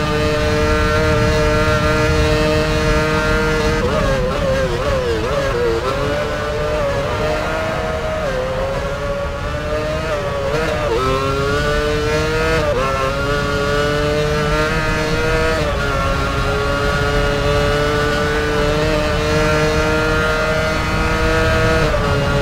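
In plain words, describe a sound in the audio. A racing car engine whines at high revs, dropping in pitch as it brakes and rising again as it speeds up.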